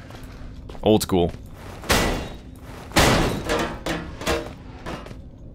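A metal bar strikes a metal vent grate with loud clanging blows.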